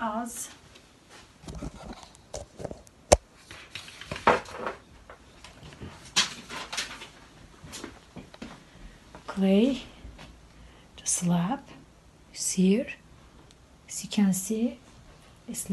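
A woman speaks close by, calmly.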